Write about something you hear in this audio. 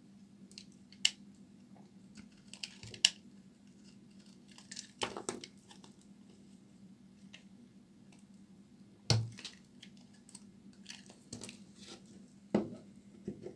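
A knife blade cuts through a bar of soap with crisp cracks.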